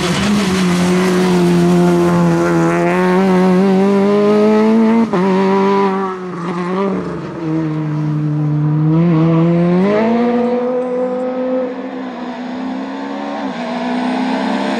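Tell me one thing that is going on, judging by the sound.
A rally car engine revs hard and shifts gears as the car speeds past.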